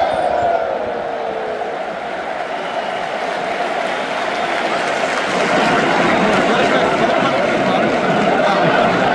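A large stadium crowd chants and sings loudly in a big open arena.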